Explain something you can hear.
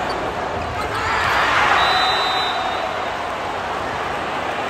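A crowd roars loudly after a rally ends.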